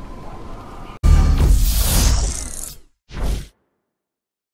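A loud whooshing jingle plays and ends abruptly.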